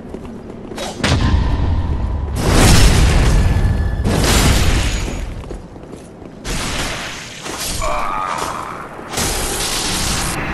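Swords clash and slash with heavy metallic hits.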